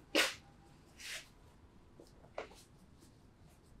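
A towel rubs against skin.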